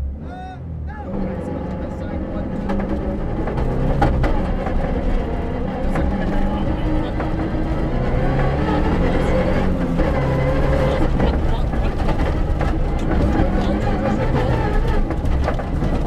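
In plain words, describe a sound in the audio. A rally car engine roars as the car accelerates hard.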